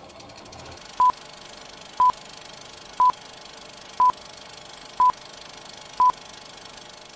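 A film countdown beeps once a second.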